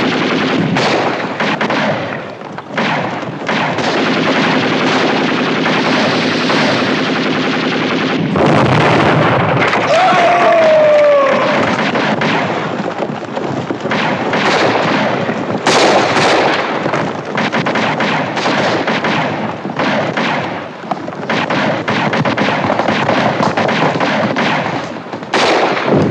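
Gunshots crack repeatedly.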